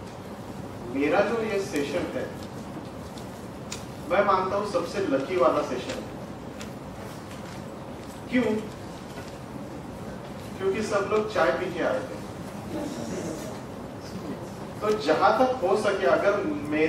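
A young man speaks calmly into a microphone, with pauses, in a slightly echoing room.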